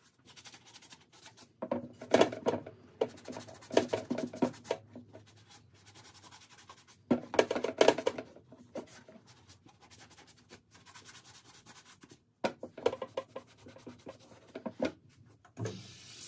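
A sponge scrubs and squeaks against leather.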